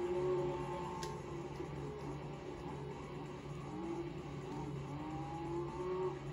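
A racing car engine drones loudly, dropping in pitch and then revving up again.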